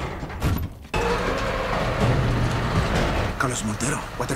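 A truck engine starts and rumbles loudly.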